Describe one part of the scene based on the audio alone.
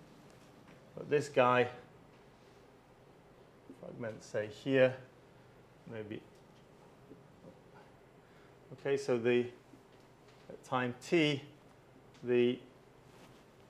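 A man speaks calmly in short phrases, with pauses between them.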